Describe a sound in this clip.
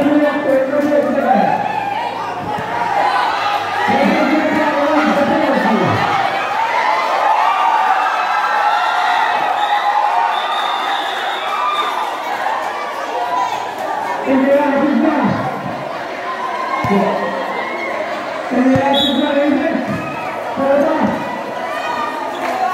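A crowd of young people chatters and calls out loudly all around, outdoors.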